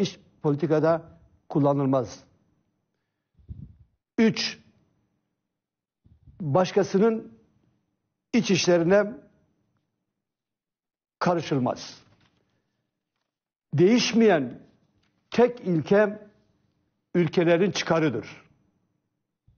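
An elderly man speaks calmly and deliberately through a microphone, with long pauses.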